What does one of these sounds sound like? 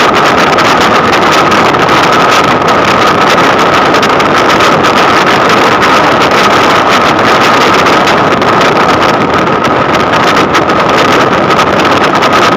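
Tyres roar steadily on a road from inside a moving car.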